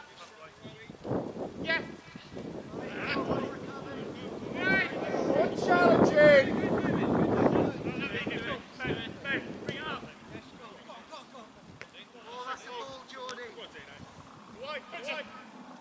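Men shout and call to each other across an open field outdoors.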